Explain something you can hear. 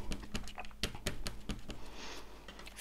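A stamp taps lightly against an ink pad several times.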